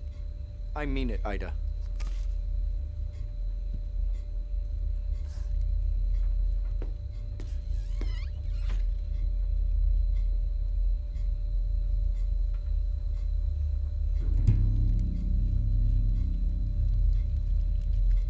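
Flames crackle as paper burns.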